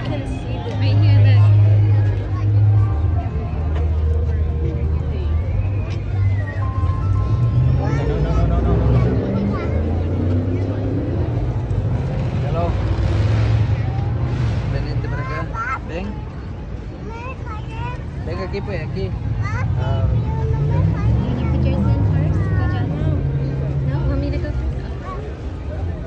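A crowd murmurs and chatters outdoors nearby.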